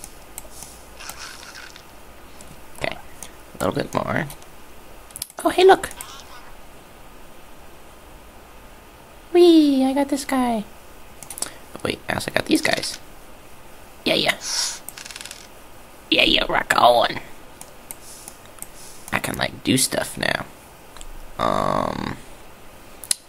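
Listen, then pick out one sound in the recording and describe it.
Small cartoon creatures squeak and chatter in short bursts.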